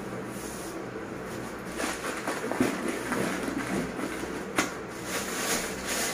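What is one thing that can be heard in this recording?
A plastic bag of grain crinkles and rustles as it is handled.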